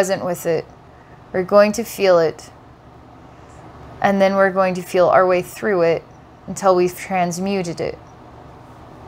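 A woman speaks calmly into a close microphone, in short phrases with pauses.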